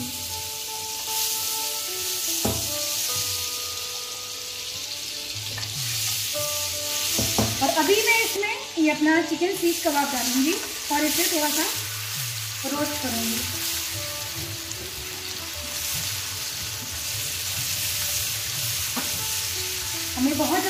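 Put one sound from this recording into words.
Butter sizzles and crackles in a hot pan.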